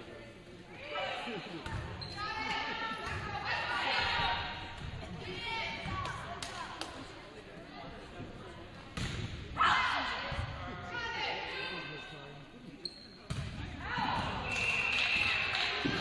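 Young women players shout and call out in an echoing gym.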